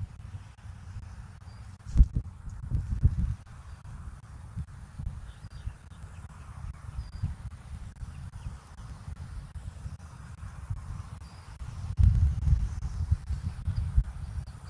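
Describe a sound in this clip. Twigs rustle faintly as eagles shift in a nest.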